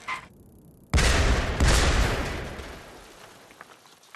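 A cannon fires with a booming blast.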